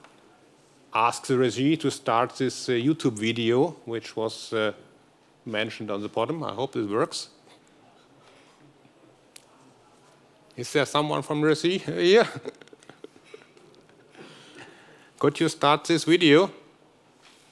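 A middle-aged man speaks through a headset microphone in a large hall, in short bursts with pauses.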